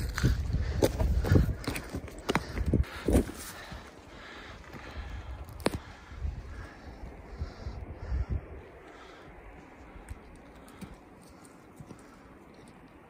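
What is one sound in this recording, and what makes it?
Boots scrape and crunch on rocky ground.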